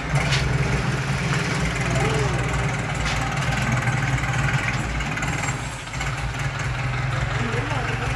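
A boat engine rumbles steadily nearby.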